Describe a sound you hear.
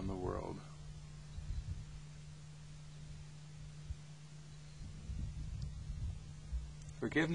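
Wind blows across open ground outdoors.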